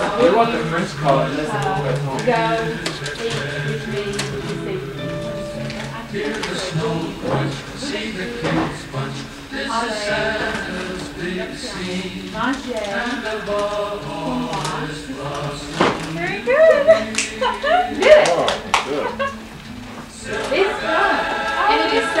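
Wrapping paper rustles and crinkles as presents are opened.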